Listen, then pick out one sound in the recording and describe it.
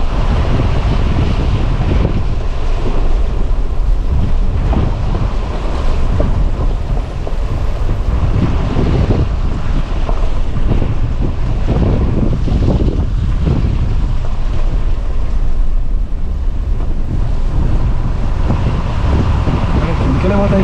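Tyres crunch and rattle over loose rocks and gravel.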